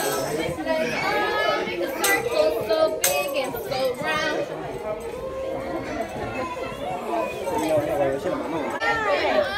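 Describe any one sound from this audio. Young children chatter and shout excitedly close by.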